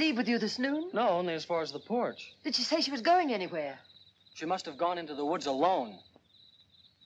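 A young woman speaks with emotion close by.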